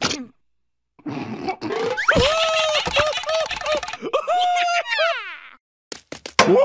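A cartoon creature laughs loudly.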